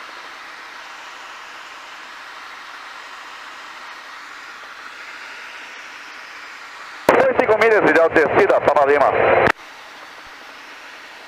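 A helicopter engine and rotor hum steadily from inside the cabin.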